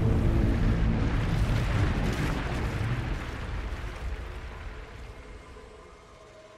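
A deep magical burst roars and slowly fades.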